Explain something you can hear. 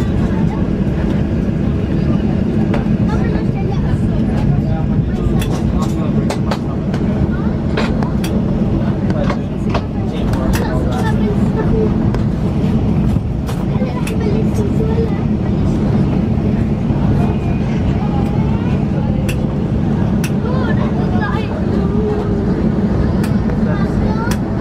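A jet engine hums steadily, heard from inside an aircraft cabin.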